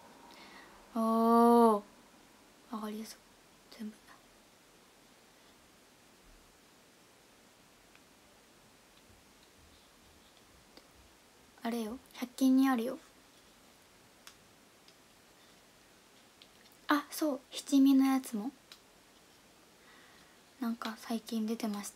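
A young woman speaks calmly and close up, in short bursts with pauses.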